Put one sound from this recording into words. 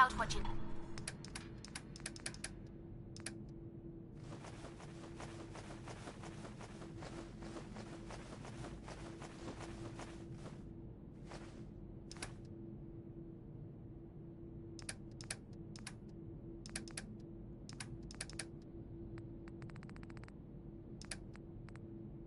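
Menu selections click sharply, one after another.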